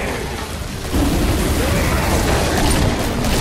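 A flamethrower roars in a burst of flame.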